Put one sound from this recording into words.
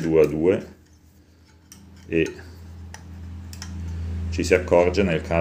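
A bicycle freewheel clicks softly as a wheel is turned by hand.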